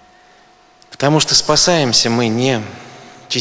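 A man speaks calmly in a deep voice through a microphone.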